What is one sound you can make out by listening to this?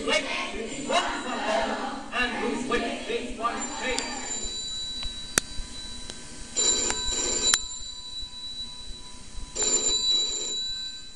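Music plays through a small loudspeaker.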